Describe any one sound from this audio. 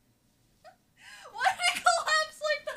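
A young woman squeals and talks excitedly from across the room.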